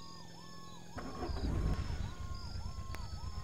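A truck engine starts up.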